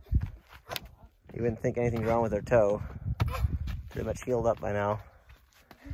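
Shoes scuff and tap on bare rock.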